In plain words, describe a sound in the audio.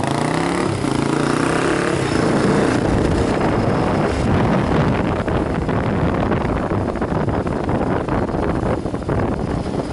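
A motorcycle engine hums up close, then rises in pitch.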